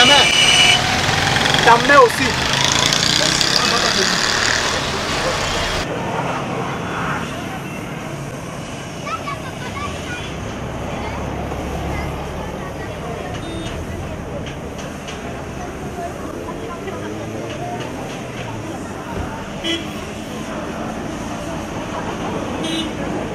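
Cars drive by on a busy street.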